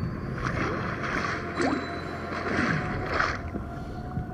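Water splashes as a shark leaps from the sea.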